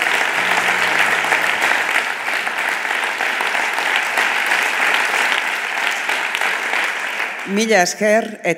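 A crowd applauds loudly.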